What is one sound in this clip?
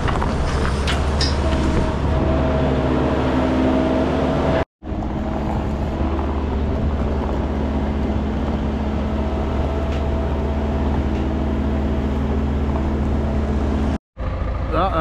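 A diesel engine runs steadily close by.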